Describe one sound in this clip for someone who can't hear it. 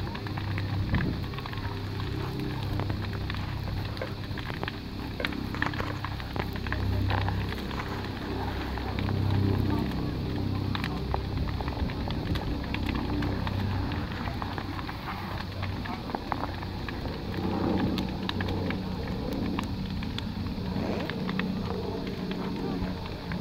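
A large bonfire roars and crackles.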